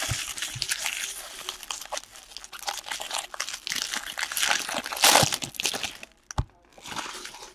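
Cards and plastic wrappers rustle and crinkle as hands handle them.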